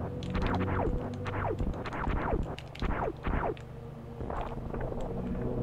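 Electronic game sound effects zap repeatedly with quickly falling pitch.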